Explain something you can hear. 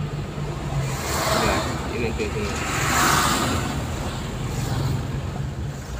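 A motorcycle passes close by.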